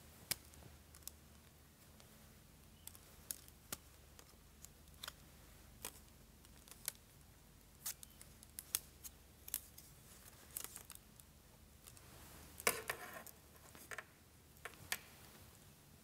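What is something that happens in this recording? Wooden slats click and knock as a folding ruler is unfolded.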